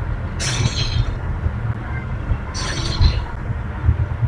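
A sword swings and strikes with a sharp whoosh.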